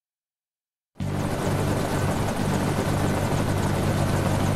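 A ship's engine rumbles steadily.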